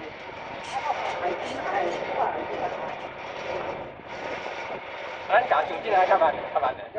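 Wheels roll and rattle steadily along rails.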